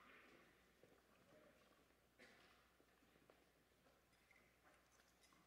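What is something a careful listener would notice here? Footsteps shuffle faintly across a stone floor in a large echoing hall.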